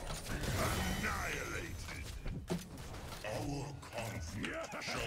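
Fantasy game combat effects clash and burst.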